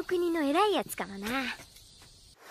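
A young boy speaks with animation, his voice rising and falling.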